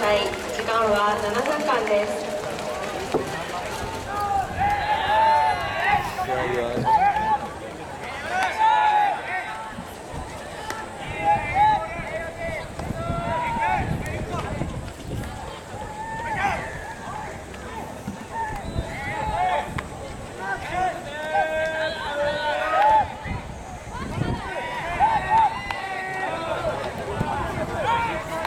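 Young men shout and call out loudly across an open field.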